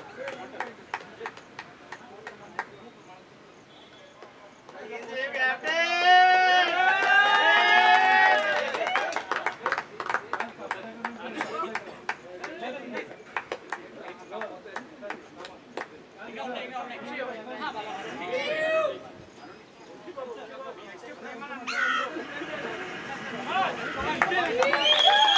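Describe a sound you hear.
Several men clap their hands outdoors.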